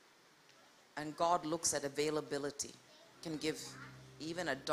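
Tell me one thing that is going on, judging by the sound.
A woman sings into a microphone, heard through loudspeakers in an echoing hall.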